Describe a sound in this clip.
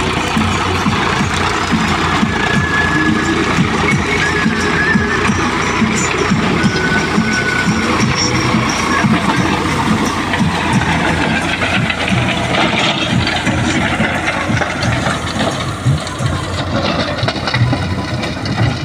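A rotary tiller churns and grinds through dry soil.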